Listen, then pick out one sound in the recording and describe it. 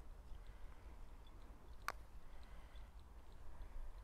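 A putter taps a golf ball.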